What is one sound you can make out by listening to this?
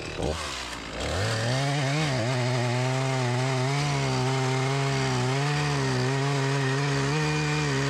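A chainsaw engine starts up again and drones steadily while cutting wood.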